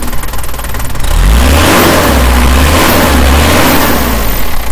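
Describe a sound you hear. A car engine revs up and roars louder.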